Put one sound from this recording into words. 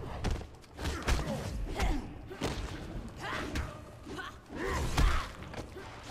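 Punches and kicks land with sharp thuds in a fighting game.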